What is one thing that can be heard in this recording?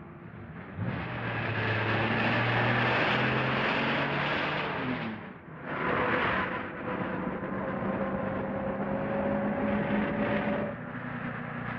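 A car engine revs and roars as it pulls away.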